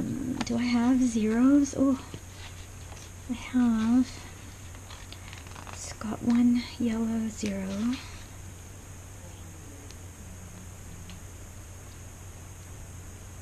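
Paper rustles and crinkles softly as hands handle sheets.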